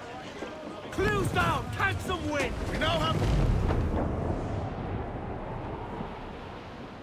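Waves wash against a sailing ship's hull.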